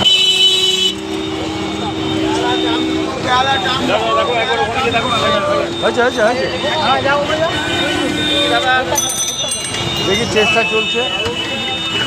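A crowd of men shout and talk excitedly close by.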